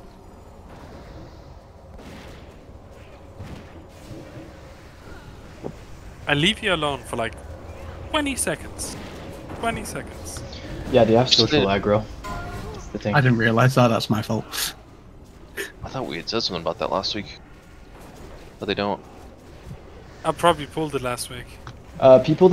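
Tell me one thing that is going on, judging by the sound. Spell effects crackle and whoosh in a game battle.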